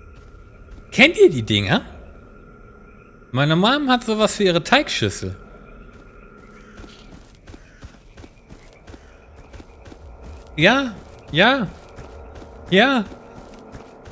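A man talks with animation through a close microphone.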